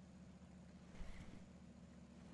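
A fishing reel clicks as line is pulled.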